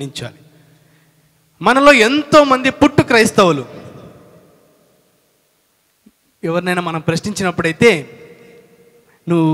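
A man preaches with animation into a microphone, heard through a loudspeaker with some echo.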